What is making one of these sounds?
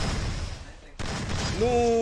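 A gun fires in sharp cracks.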